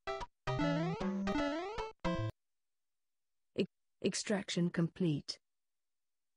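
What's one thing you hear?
Upbeat electronic game music plays in short bursts.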